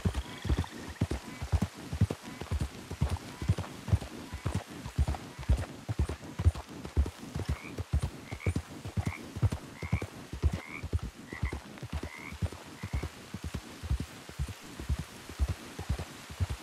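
Horse hooves thud steadily at a gallop on a dirt path.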